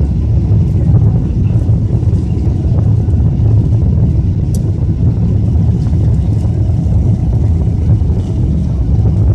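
The wheels of a jet plane rumble and thump over the runway.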